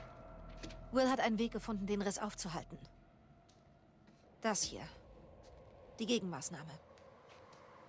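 A young woman speaks tensely and quietly, close by.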